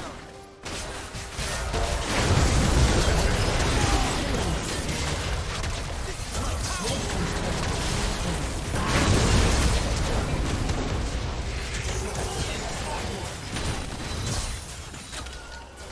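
Magic blasts crackle and burst in a fast game battle.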